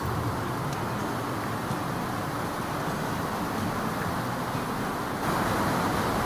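Water splashes and trickles steadily down a rock face.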